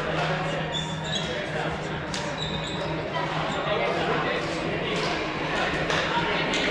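A crowd of young people chatters and calls out in a large echoing gym.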